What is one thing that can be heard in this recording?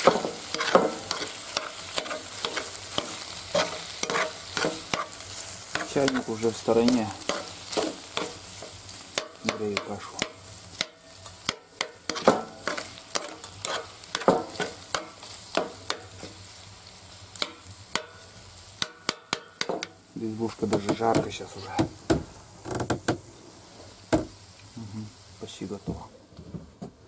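Food sizzles and crackles in a frying pan.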